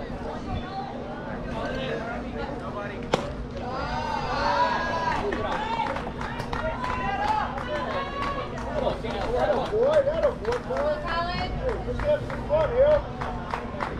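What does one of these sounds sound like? A crowd of men and women shout and cheer from nearby outdoors.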